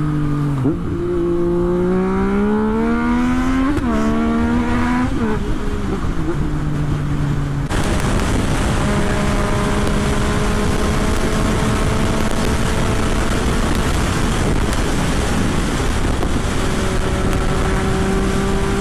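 A motorcycle engine revs up and shifts through gears at speed.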